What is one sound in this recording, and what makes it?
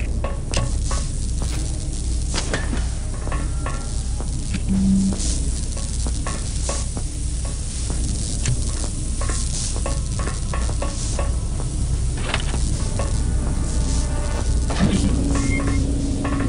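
Footsteps clank on a metal floor grating.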